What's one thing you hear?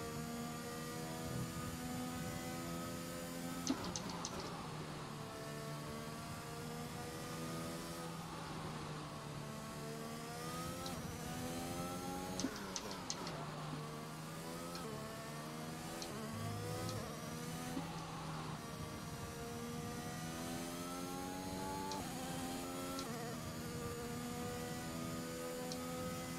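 A racing car engine roars at high revs, rising and dropping in pitch with gear changes.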